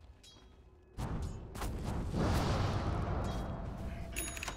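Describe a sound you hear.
Game spells and blows crash loudly in a fight.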